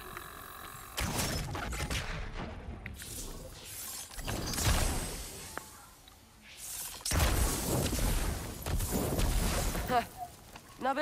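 A magical arrow bursts with a loud whoosh.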